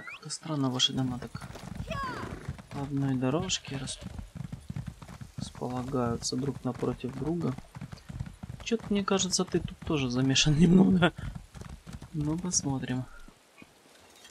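A horse's hooves clop steadily along a path.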